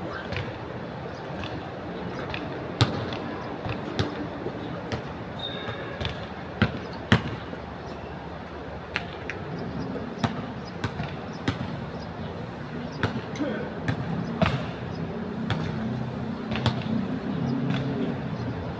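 A basketball bounces on an outdoor court with sharp thuds.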